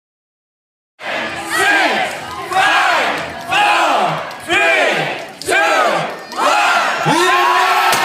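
A large crowd shouts a countdown together in loud, even bursts.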